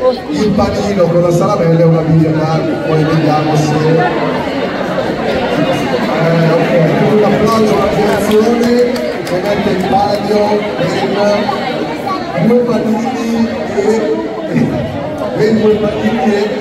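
Children chatter and call out.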